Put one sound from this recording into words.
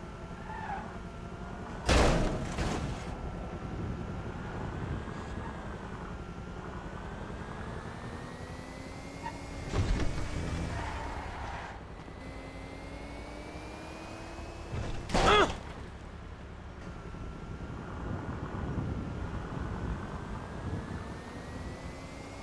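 A car engine hums and revs as the car drives along.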